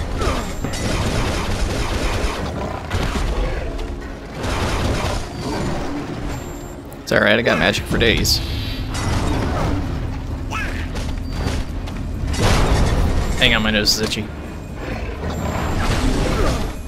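A monster roars and grunts.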